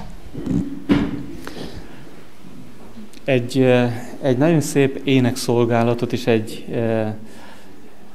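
A man speaks calmly through a microphone in an echoing hall.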